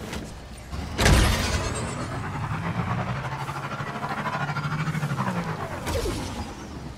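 A motorcycle engine hums steadily and rises and falls in pitch.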